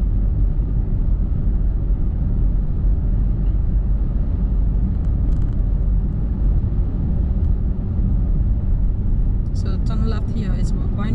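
A car's engine and tyres rumble steadily on a highway from inside the car.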